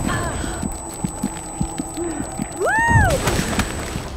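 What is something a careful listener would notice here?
A snowboarder crashes hard into the snow.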